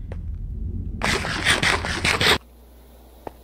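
A game character munches food with loud crunching.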